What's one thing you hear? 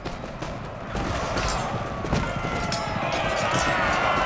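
A large column of soldiers marches across open ground.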